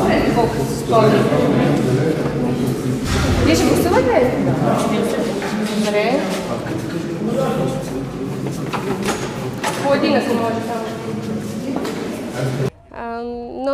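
Several men and women talk over each other in an echoing corridor.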